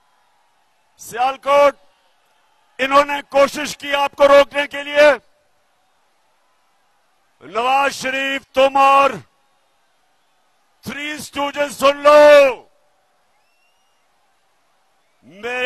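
A man speaks forcefully into a microphone over a loudspeaker, in short bursts with pauses.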